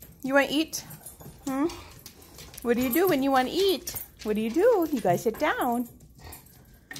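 A dog whines and yowls in a high, wavering voice close by.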